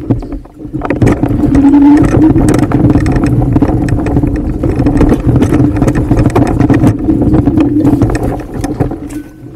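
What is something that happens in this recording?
An electric bike motor hums steadily.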